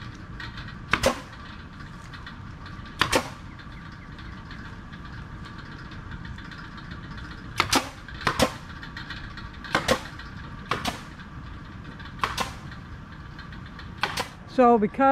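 A staple gun snaps sharply into wood several times.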